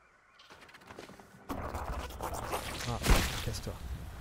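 A soft burst whooshes and pops.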